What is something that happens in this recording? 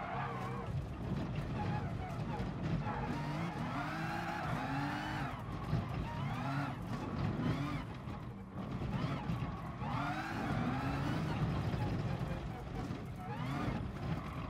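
Tyres squeal through tight corners.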